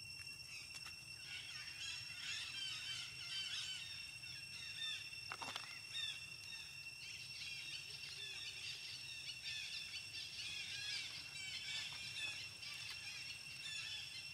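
A baby monkey squeaks in high, rapid chirps.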